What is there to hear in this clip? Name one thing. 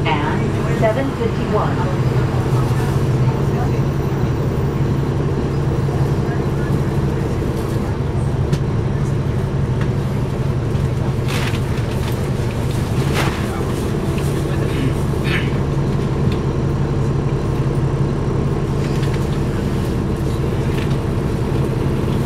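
A bus engine hums steadily from inside the bus as it drives.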